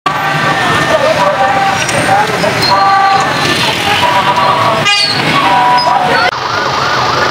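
Motorcycle engines rumble and putter along a busy street.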